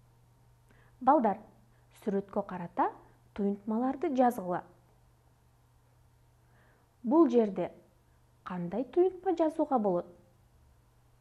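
A young woman speaks calmly and clearly into a microphone, in short phrases with pauses.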